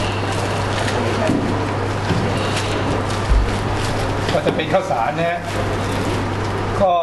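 Plastic wrapping crinkles and rustles as hands tear it open.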